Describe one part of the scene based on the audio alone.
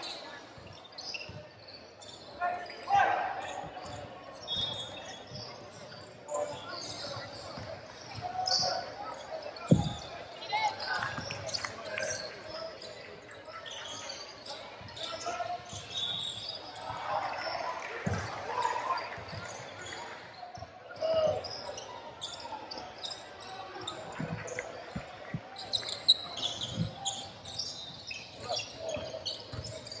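A basketball bounces on a hardwood floor in a large echoing gym.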